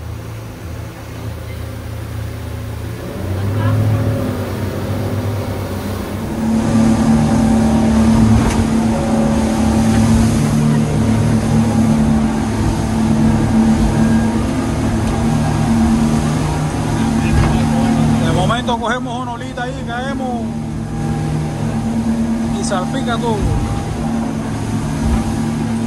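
A boat engine drones steadily and loudly.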